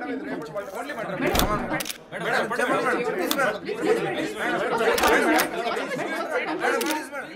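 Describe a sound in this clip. Several men ask questions loudly and over one another.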